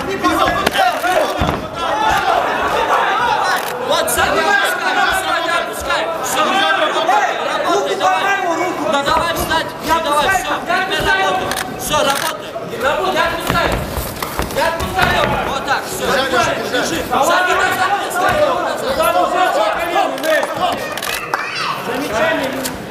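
Spectators shout and cheer throughout in a large echoing hall.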